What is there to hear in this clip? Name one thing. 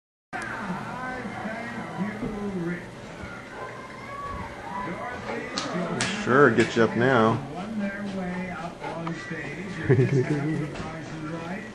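A large dog sniffs loudly.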